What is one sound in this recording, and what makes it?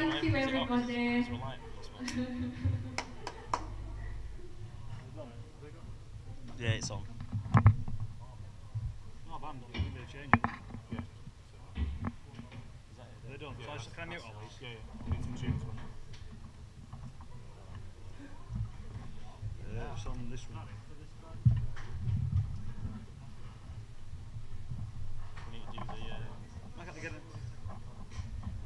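Young men talk nearby.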